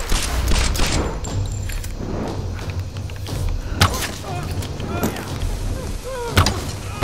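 Gunshots fire in sharp single bangs.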